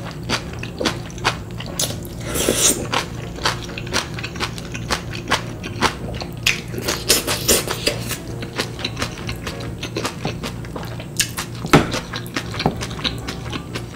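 A young woman chews wet food noisily, close to a microphone.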